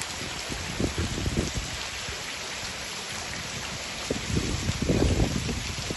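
Muddy floodwater flows and splashes steadily.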